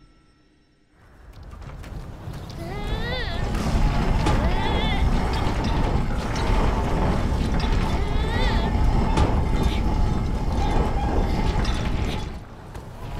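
A heavy metal cage grinds and rumbles as it is pushed along.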